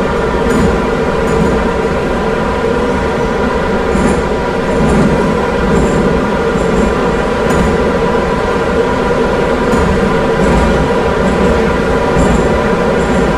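An electric train's motor hums steadily.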